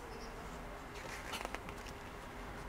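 Pages of a catalogue rustle as they turn.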